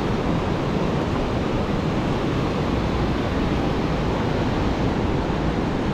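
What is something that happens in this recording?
Waves break and wash up on the shore.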